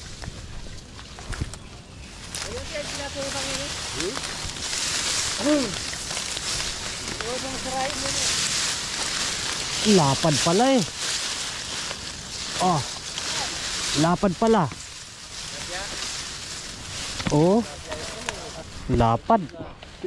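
Tall grass rustles and swishes as someone pushes through it.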